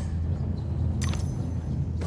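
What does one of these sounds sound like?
A bright magical burst flares up with a shimmering whoosh.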